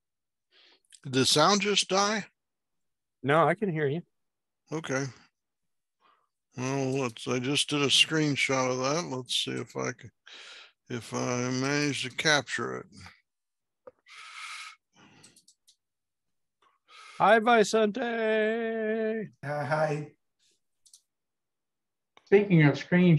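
Middle-aged and older men talk with animation over an online call.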